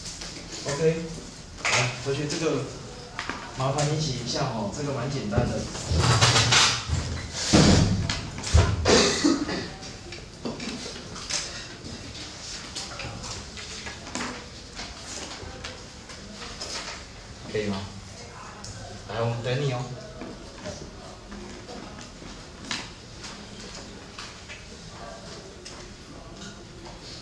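A man speaks to a room in a lively, teaching voice, close by.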